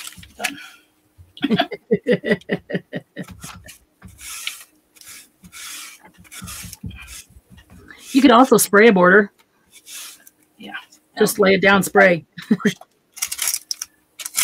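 A foam tool dabs and rubs softly across paper.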